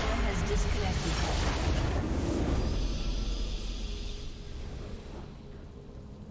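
A loud game explosion booms and rumbles, then fades away.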